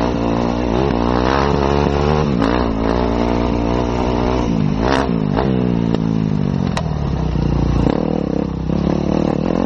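A motorcycle engine revs up and down throughout.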